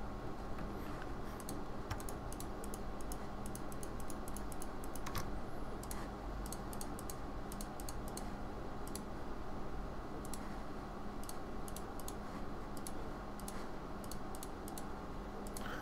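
A computer mouse clicks rapidly.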